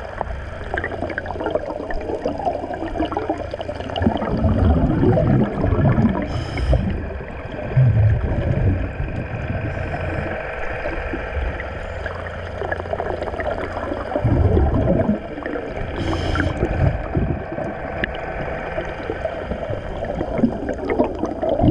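Water rushes and rumbles steadily around an underwater microphone, with louder surges now and then.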